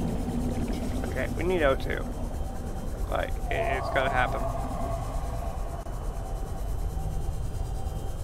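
A small submarine's motor hums steadily underwater.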